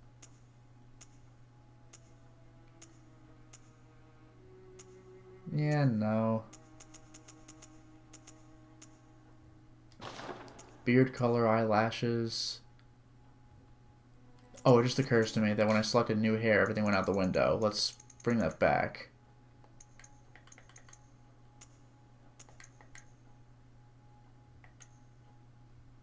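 Soft menu clicks tick one after another as selections change.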